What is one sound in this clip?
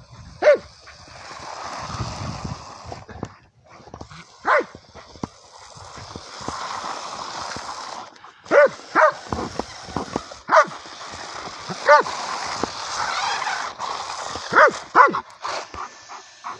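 A small electric motor whines and buzzes in bursts.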